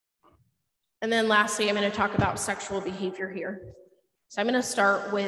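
A woman speaks calmly through a microphone in a room.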